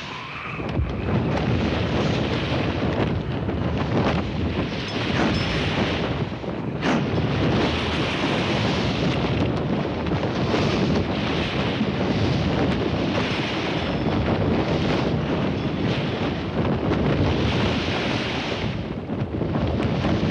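Heavy sail canvas rustles and flaps as it is hauled in.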